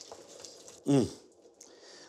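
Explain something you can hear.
Tongs toss leafy greens in a glass bowl with a soft rustle.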